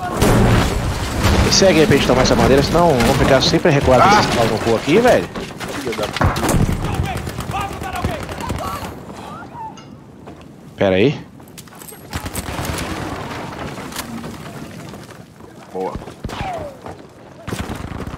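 A submachine gun fires rapid bursts close by.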